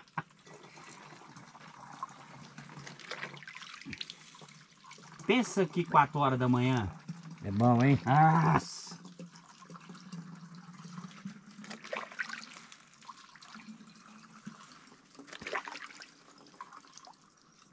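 A shallow stream trickles softly.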